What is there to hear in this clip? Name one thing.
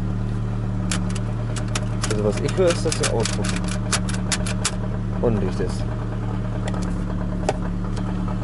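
An idling car engine hums steadily.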